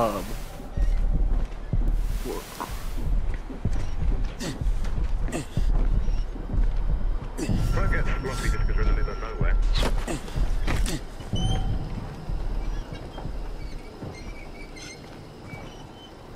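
Heavy footsteps thud and clank on metal.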